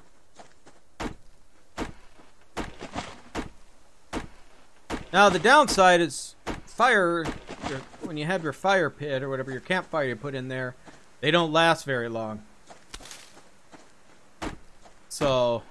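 An axe chops into a tree trunk with sharp knocks.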